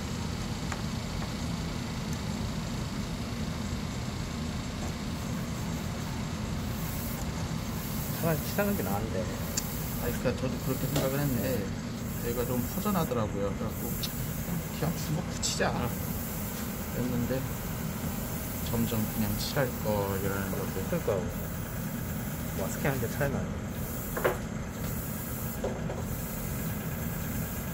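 Tweezers tap lightly against a small plastic model.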